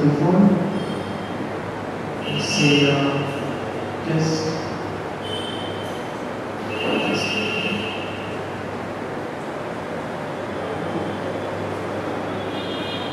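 A man speaks calmly, heard through a microphone.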